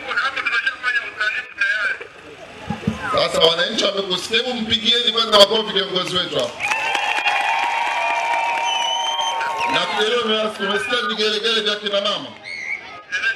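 A large crowd of people chatters and calls out outdoors.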